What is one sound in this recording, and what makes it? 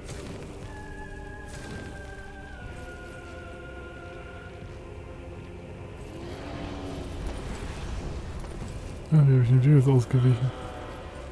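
A huge monster growls and roars.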